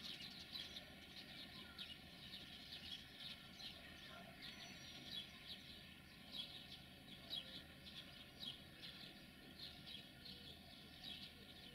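An electric locomotive rumbles low as it rolls slowly closer along the rails.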